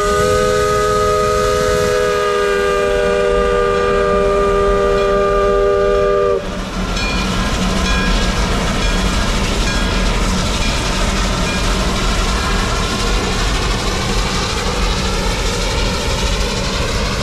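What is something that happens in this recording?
A steam locomotive chugs and puffs as it pulls away.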